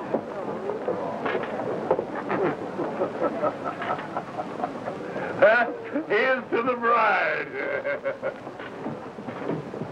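A man speaks loudly and cheerfully nearby.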